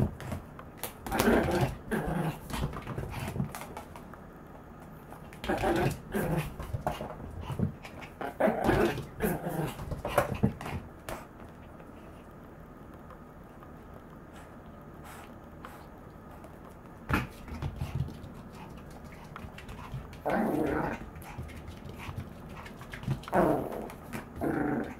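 A small dog growls playfully.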